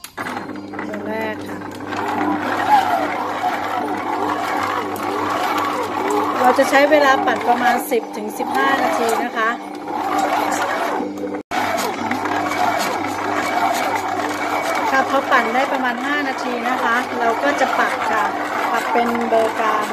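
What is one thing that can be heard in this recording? A stand mixer's motor whirs steadily as it kneads dough.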